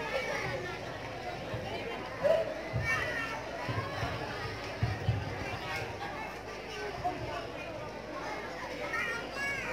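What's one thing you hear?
A group of young children sing together, heard through loudspeakers in an echoing hall.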